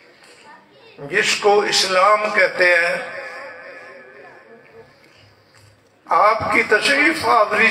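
A man chants loudly into a microphone, heard through loudspeakers with echo.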